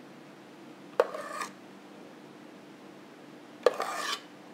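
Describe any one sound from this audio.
A spoon scrapes against a metal bowl.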